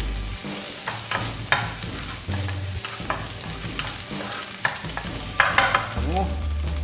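A wooden spatula scrapes and taps against a pan.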